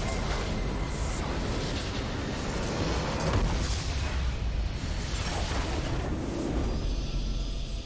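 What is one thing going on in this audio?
A massive structure explodes with a deep, rumbling blast.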